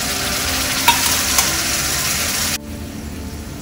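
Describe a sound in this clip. A metal spoon scrapes and taps against a metal pan.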